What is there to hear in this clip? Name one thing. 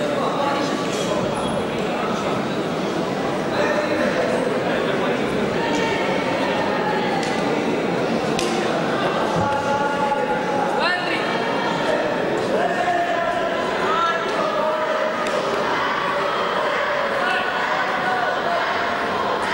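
A crowd of spectators chatters throughout in a large echoing hall.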